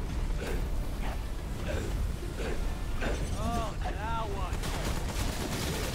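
Fiery explosions boom.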